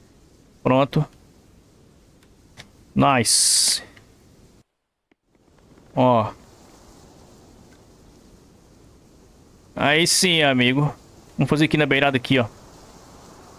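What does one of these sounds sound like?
A man speaks in short bursts into a close microphone.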